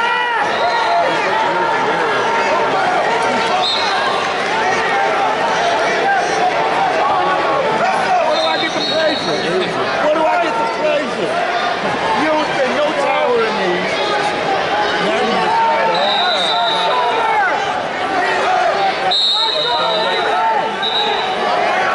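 A large crowd chatters and shouts in a big echoing arena.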